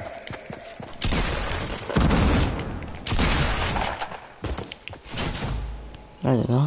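Gunshots ring out in loud bursts.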